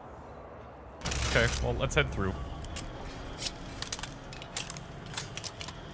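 A heavy metal airlock wheel turns with loud clanks and a rush of air.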